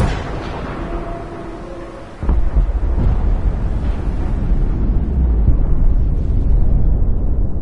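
A huge explosion booms loudly and rumbles deeply.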